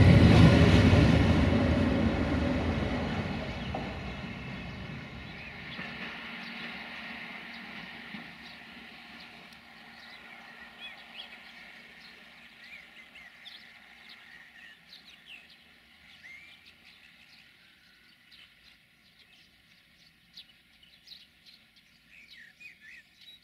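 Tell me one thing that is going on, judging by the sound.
A locomotive hauling freight wagons rumbles past close by, then fades into the distance.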